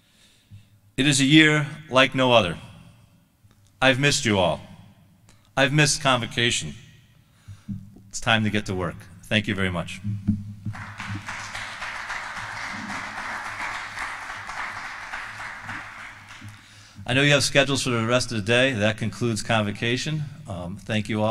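A man speaks calmly into a microphone over a loudspeaker.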